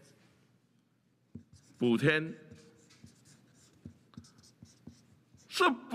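A marker squeaks and scratches on paper.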